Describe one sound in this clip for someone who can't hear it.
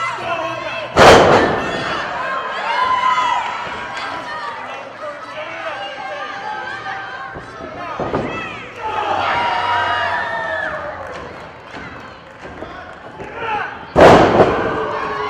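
A wrestler's body slams onto a ring mat with a loud boom.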